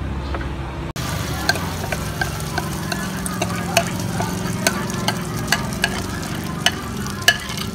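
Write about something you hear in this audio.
Batter sizzles and crackles in hot oil.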